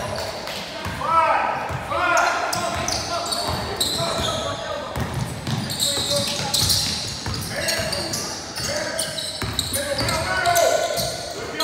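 Sneakers squeak on a hardwood court in an echoing gym.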